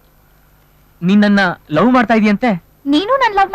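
A young man speaks in a low, serious voice.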